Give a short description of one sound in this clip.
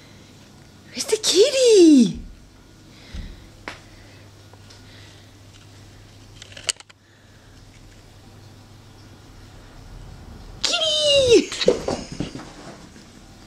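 A Doberman puppy lets out high, falling howls.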